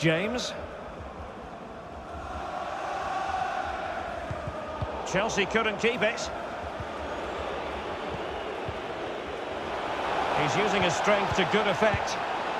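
A large stadium crowd murmurs and swells steadily.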